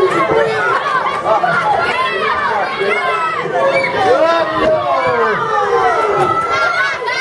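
A crowd of children and adults shouts and cheers loudly in an echoing hall.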